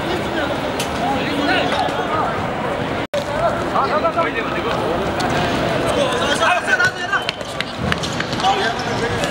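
Shoes squeak and scuff on a hard court.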